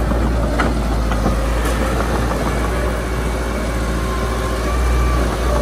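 Loose dirt scrapes and tumbles ahead of a bulldozer blade.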